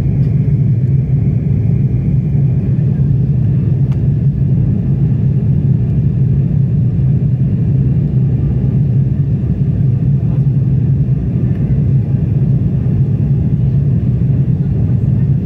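Jet engines roar steadily inside an aircraft cabin.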